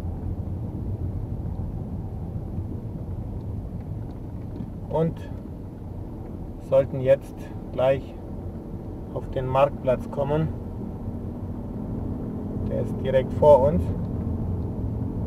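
A car engine hums steadily at low speed.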